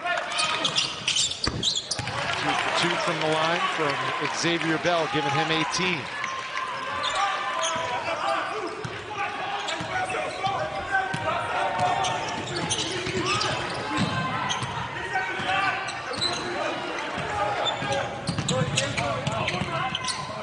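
A basketball bounces on the court with dull thuds.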